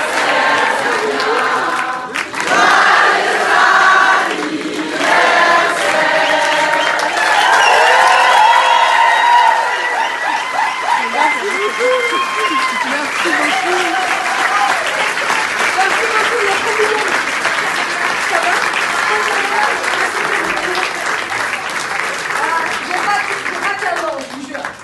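A crowd sings together loudly.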